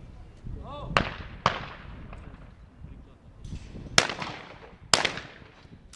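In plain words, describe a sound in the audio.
Shotguns fire sharp, loud cracks that echo across open ground.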